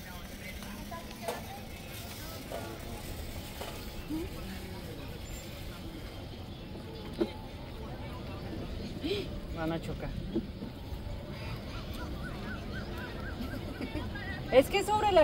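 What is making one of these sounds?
A small cart hums and rolls along a paved path.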